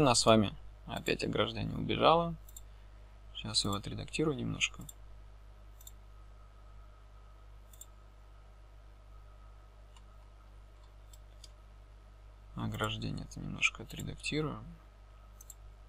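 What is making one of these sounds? A young man talks calmly and closely into a microphone.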